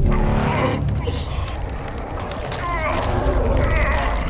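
A man groans in pain and cries out.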